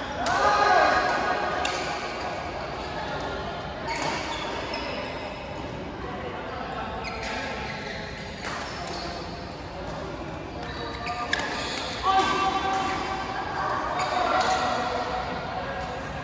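Shuttlecocks are struck with rackets, echoing through a large hall.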